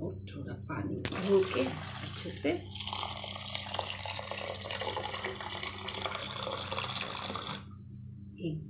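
A woman talks close by, calmly.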